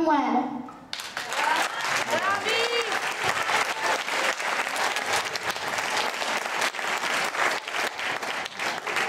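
Children clap their hands.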